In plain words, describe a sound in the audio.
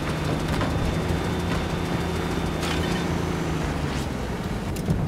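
A tank engine rumbles and its tracks clatter.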